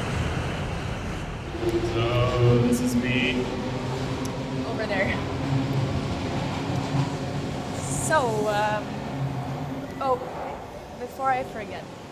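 A young man speaks softly.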